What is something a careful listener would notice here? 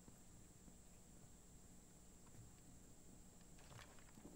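Footsteps thud softly on stairs.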